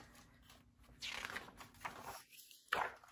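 A page of a book rustles as it turns.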